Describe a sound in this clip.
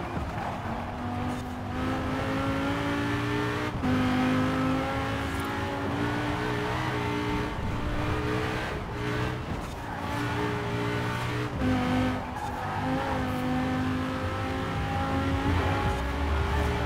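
A car engine roars at high revs, dropping briefly between gear changes.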